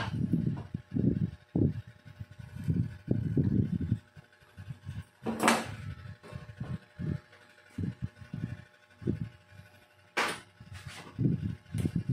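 Small metal tools clink and knock on a wooden bench.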